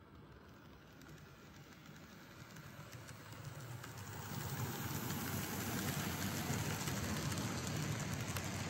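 A model train rolls along its track with a soft, steady rumble that grows louder as it comes close.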